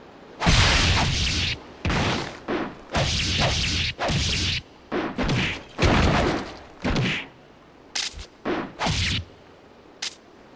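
Swords clash and swish in quick bursts.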